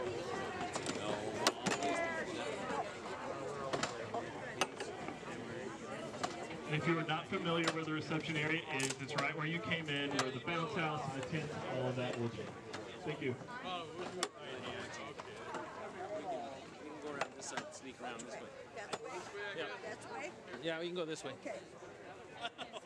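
A crowd of men and women chatters and murmurs outdoors.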